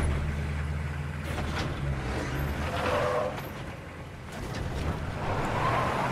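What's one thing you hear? A military truck engine rumbles as the truck drives away.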